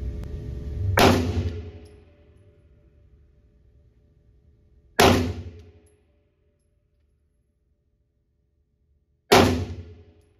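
A handgun fires single loud shots that ring out with a sharp echo.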